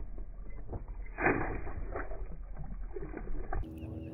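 A fishing line swishes out over the water.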